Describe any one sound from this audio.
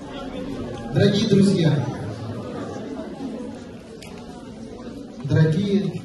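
A man speaks into a microphone through loudspeakers in a large echoing hall.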